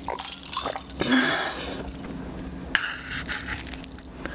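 A young woman slurps noodles close to a microphone.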